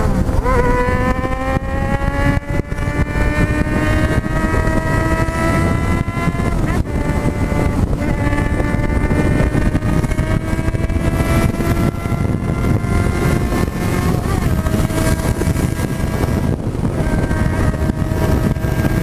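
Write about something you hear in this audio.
A motorcycle engine roars and climbs in pitch as it speeds up, dropping briefly at each gear change.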